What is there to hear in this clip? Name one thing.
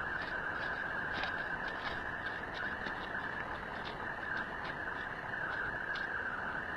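Wind blows across open ground.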